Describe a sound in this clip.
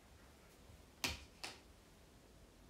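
A phone is bumped twice with sharp knocks as it is handled.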